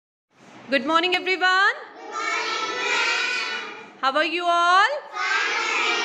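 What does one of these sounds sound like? Young children shout a cheer together in chorus.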